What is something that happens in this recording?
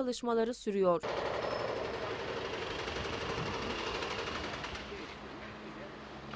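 A heavy demolition machine rumbles and crunches through concrete.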